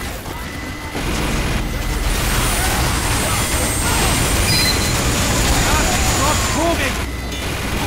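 A heavy rotary machine gun fires in a rapid, roaring stream.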